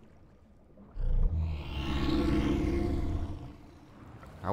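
Water splashes and gurgles as a swimmer dives under.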